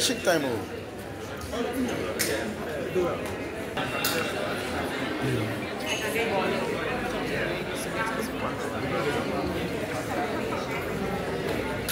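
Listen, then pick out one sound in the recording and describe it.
A crowd of men and women chatter indoors close by.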